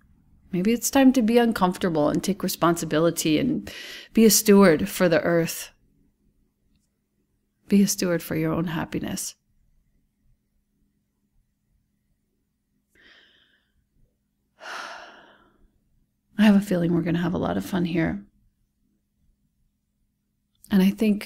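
A woman speaks calmly and warmly into a close microphone, with pauses.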